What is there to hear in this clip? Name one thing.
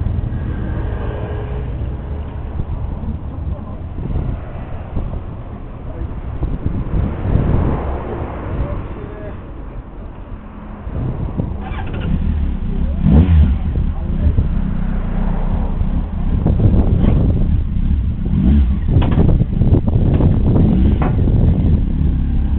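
A motorcycle engine idles nearby with a low rumble.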